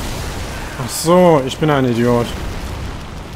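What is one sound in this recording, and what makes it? A huge beast growls loudly.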